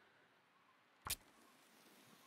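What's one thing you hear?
A match strikes with a sharp scrape.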